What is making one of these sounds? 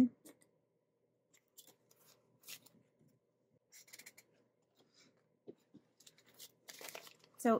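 Cards and paper slide and tap against a binder.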